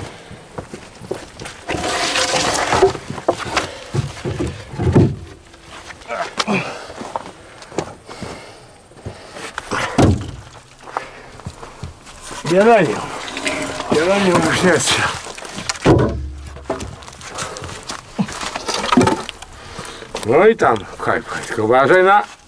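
Wooden logs knock and thud as they are stacked.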